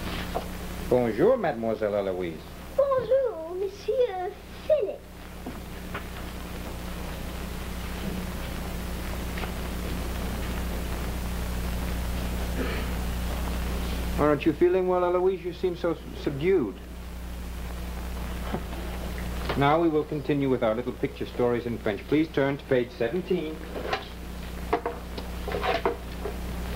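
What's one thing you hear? A young man speaks in a low, steady voice.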